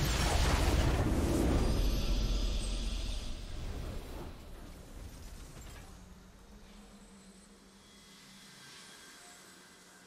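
A triumphant game fanfare swells and fades away.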